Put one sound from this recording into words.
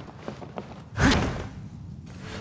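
A sword swishes through the air with a sharp whoosh.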